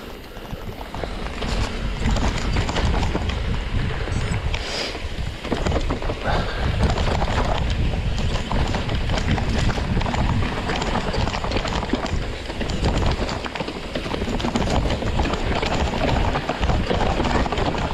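Bicycle tyres rumble and crunch over a dirt trail.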